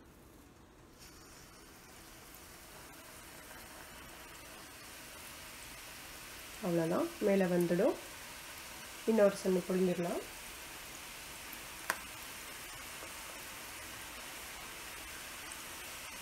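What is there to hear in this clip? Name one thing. Hot oil sizzles and bubbles steadily in a pan.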